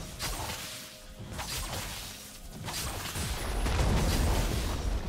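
Game spells and weapon hits crackle and thud in a fast fight.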